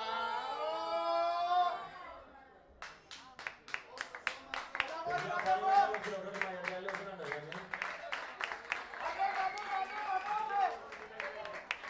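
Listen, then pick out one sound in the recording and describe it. People in the audience cheer and call out loudly.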